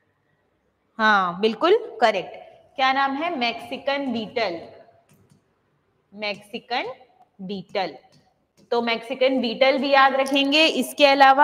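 A young woman speaks clearly into a close microphone, explaining.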